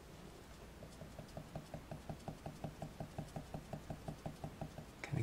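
A cotton swab rubs softly and rhythmically on paper.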